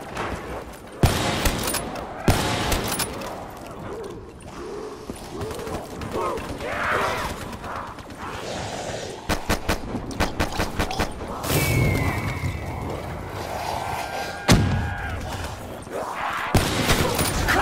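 A rifle fires loud, sharp shots, some in quick bursts.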